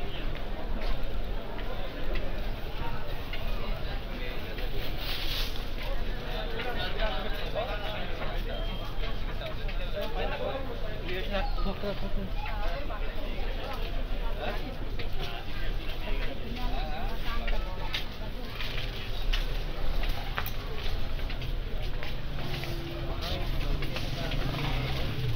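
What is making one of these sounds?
Many people chatter in a busy outdoor market lane.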